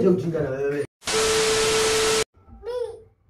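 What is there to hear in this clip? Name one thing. Loud static hisses with a steady tone.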